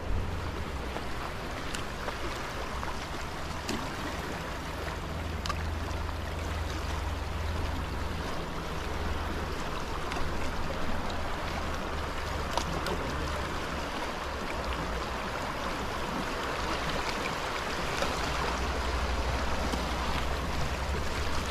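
A wide river rushes past steadily.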